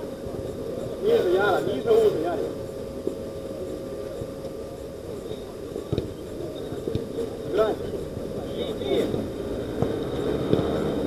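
Players shout to each other across an outdoor pitch.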